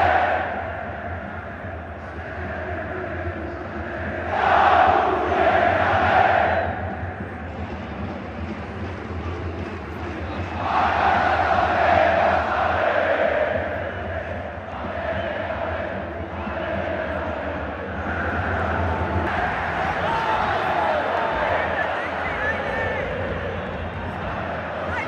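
A huge stadium crowd chants and sings in unison, echoing loudly.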